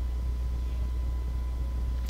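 A fire crackles softly in a hearth.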